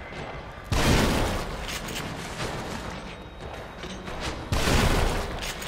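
A gun fires loudly with a booming blast.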